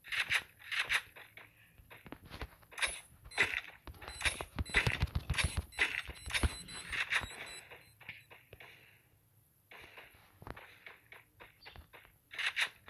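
Footsteps thud quickly across grass.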